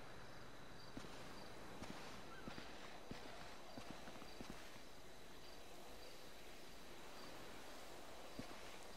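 Footsteps crunch on gravel and rock.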